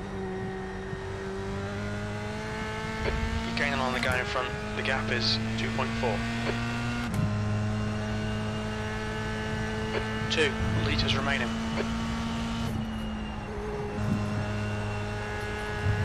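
A racing car engine drones steadily, its pitch rising through each gear and dropping at each shift.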